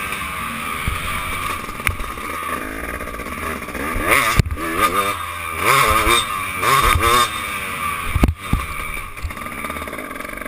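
A motorcycle engine revs up and down loudly close by.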